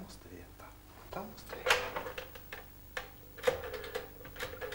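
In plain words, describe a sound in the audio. A telephone handset clatters as it is lifted.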